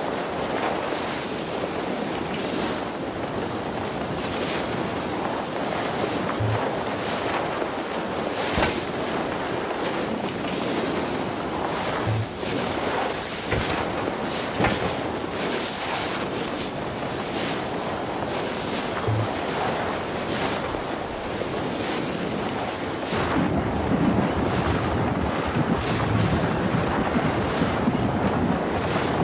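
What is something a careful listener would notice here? Skis hiss and scrape steadily over hard snow.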